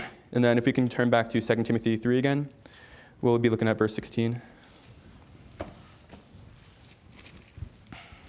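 Paper pages rustle as a man turns them.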